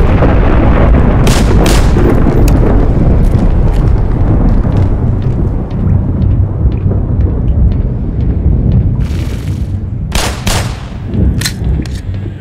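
Pistol shots ring out inside a metal pipe.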